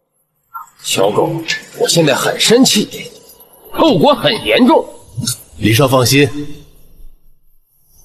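A man speaks angrily, close by.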